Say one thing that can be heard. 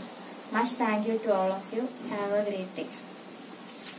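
A young girl speaks clearly and calmly, close to the microphone.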